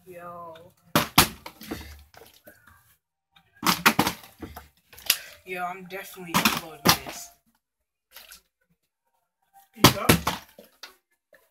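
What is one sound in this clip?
A small object is tossed and knocks onto a hard floor.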